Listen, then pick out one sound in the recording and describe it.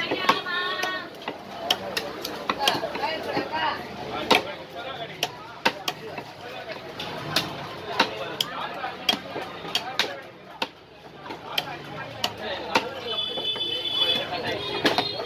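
A cleaver chops through fish on a wooden block with sharp, repeated thuds.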